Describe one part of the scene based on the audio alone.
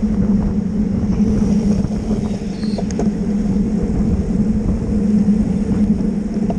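Bicycle tyres hum steadily on smooth pavement.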